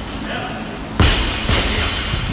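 A loaded barbell drops and bangs onto a rubber floor.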